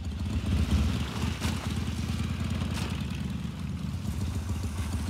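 A small motor scooter engine putters steadily close by.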